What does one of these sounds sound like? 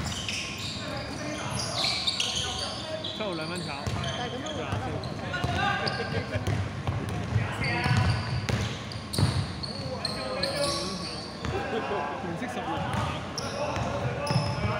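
Young men shout and call out to each other across a large echoing hall.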